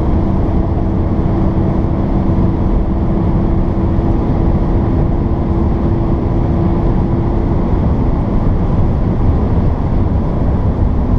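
A car engine drones steadily with road rumble inside the cabin.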